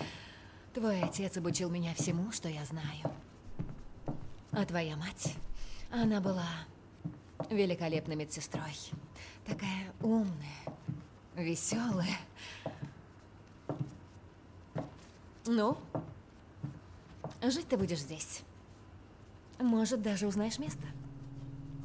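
A young woman speaks softly in reply.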